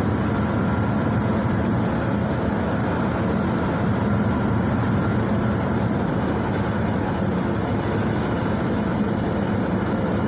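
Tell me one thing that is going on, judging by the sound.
A bus body rattles and shakes on the road.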